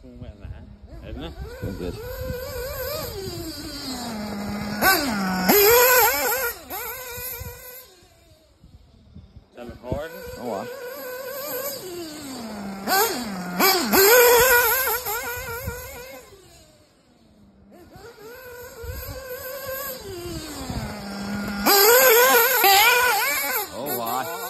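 A nitro-engined RC buggy screams past at high revs, then drops its engine back to a lower pitch.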